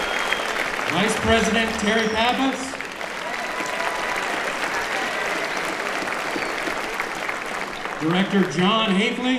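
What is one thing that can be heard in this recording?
A man speaks through a microphone over a loudspeaker.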